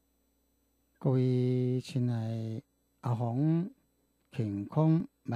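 A middle-aged man speaks calmly and slowly into a close microphone.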